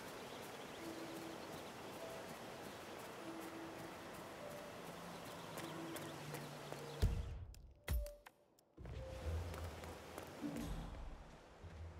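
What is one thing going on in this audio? Footsteps walk across grass and a paved path.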